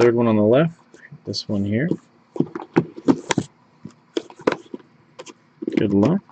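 Cardboard boxes scrape and knock as they are moved.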